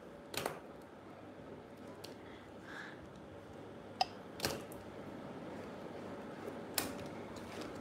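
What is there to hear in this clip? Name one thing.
A small stone taps and clicks against hard objects.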